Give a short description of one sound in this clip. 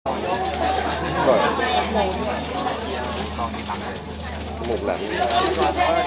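A crowd of young women chatters and squeals excitedly nearby.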